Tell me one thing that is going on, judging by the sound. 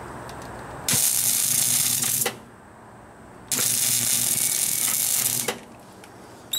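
An arc welder crackles and buzzes loudly in steady bursts.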